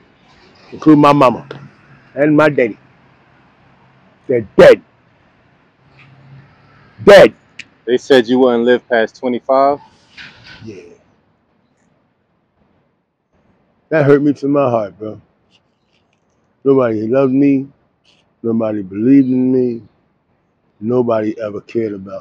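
An elderly man speaks calmly and closely into a clip-on microphone.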